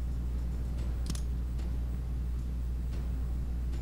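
A game menu gives a short click.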